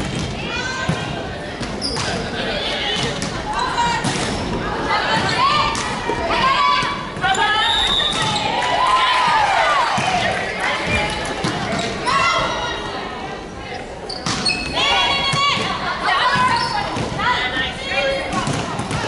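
Young women shout and call out to each other across an echoing hall.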